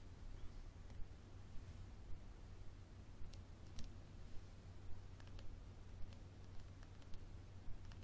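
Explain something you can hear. Hands handle a small glass bottle, tapping and clinking it softly.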